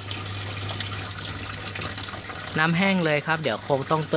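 A thin trickle of water drips from a pipe into a tank.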